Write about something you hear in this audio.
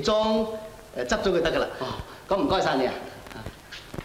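A second man answers politely.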